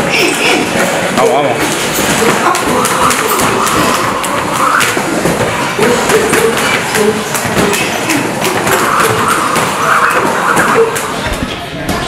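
A skipping rope slaps the floor in a quick, steady rhythm.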